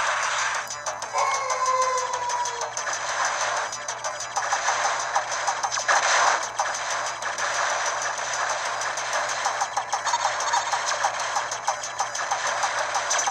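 Arcade game music plays steadily.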